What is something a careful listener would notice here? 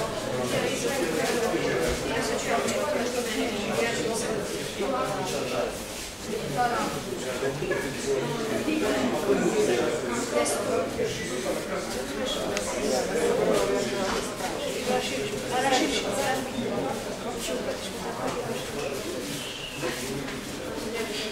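Bare feet shuffle and thump on mats.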